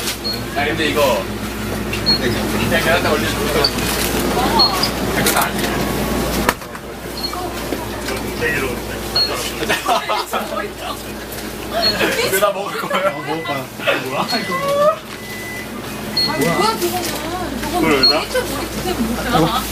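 Young men talk and laugh with animation close by.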